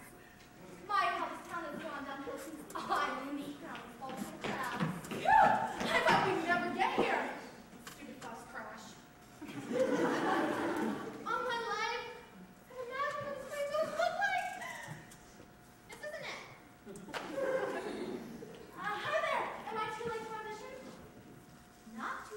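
A young woman speaks with animation on stage, heard from afar.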